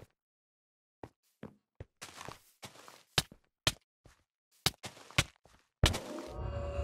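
A sword strikes with sharp hits.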